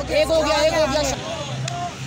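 A young man claps his hands.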